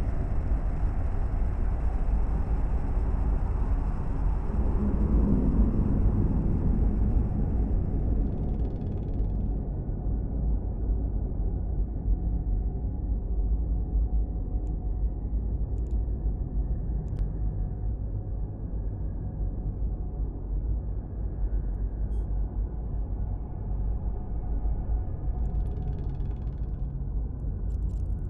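A deep spaceship engine rumble drones steadily.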